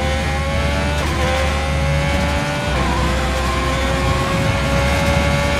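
A racing car engine whines at high revs, climbing and dropping briefly as it shifts up gears.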